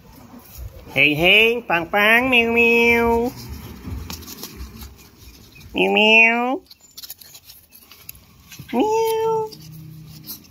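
A puppy whines loudly in high, drawn-out cries.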